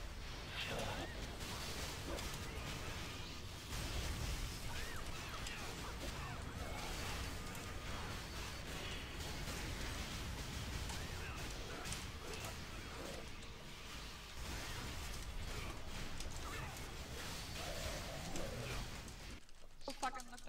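Fighting effects clash and crackle in a game battle.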